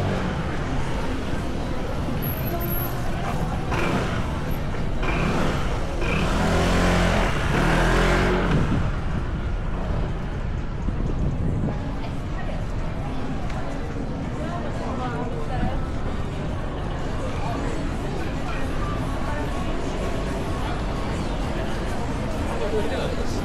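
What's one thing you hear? A busy street crowd murmurs all around outdoors.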